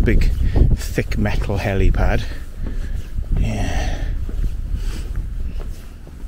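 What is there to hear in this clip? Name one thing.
Wind gusts across the microphone outdoors.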